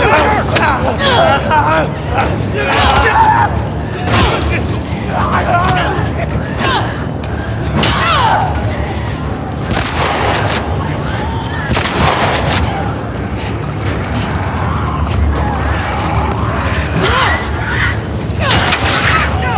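Heavy blows thud against bodies in a struggle.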